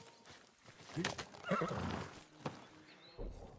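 A horse snorts and whinnies.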